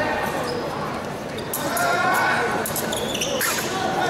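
Fencing blades clink against each other.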